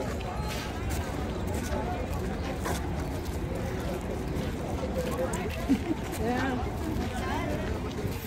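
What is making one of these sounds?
Footsteps crunch on dusty ground.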